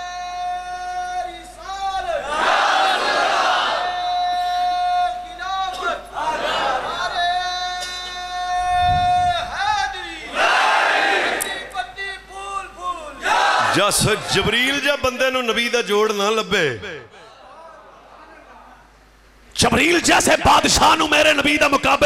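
A man chants and speaks with fervour through a loud microphone.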